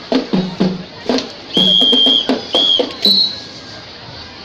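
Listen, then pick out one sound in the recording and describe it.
A crowd cheers and shouts loudly outdoors.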